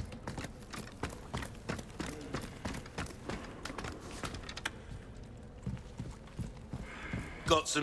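Footsteps clatter on wooden rungs and boards.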